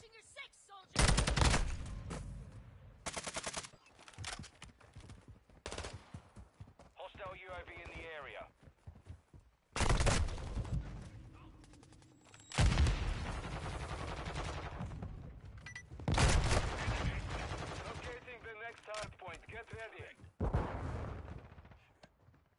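Gunfire rattles in loud bursts.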